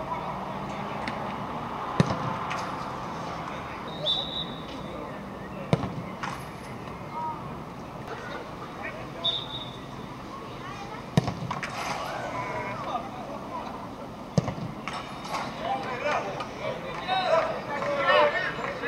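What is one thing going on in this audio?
A crowd of spectators chatters and calls out in the distance outdoors.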